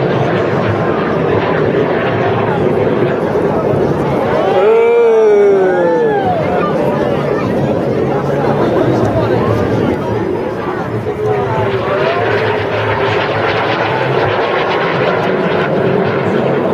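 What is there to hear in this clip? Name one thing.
Jet planes roar loudly overhead.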